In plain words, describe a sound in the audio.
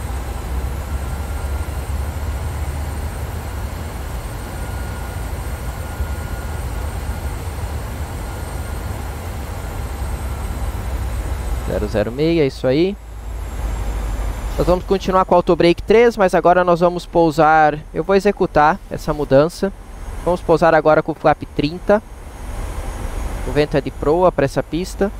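A steady low engine drone hums inside an aircraft cockpit.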